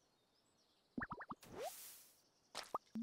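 A fish splashes as it is pulled out of the water.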